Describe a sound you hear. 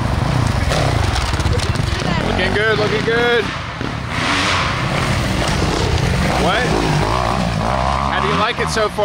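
Dirt bikes rev as they ride past nearby.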